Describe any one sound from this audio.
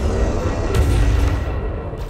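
A laser weapon fires.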